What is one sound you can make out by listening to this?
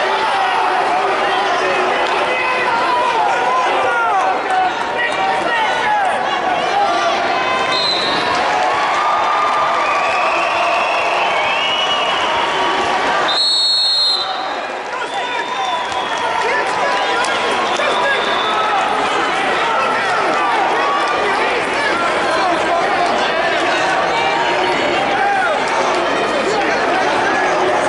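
A large crowd murmurs and chatters in a big echoing hall.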